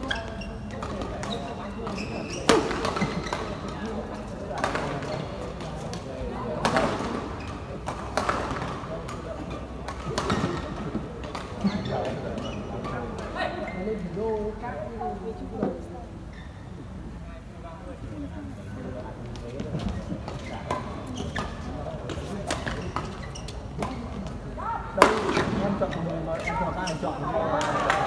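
Shoes squeak and thump on the court floor.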